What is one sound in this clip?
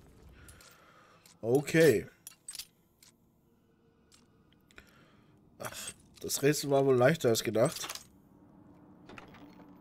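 Metal lock pins click as a lock is picked.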